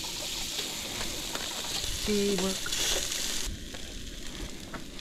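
A metal spatula scrapes and taps on a griddle.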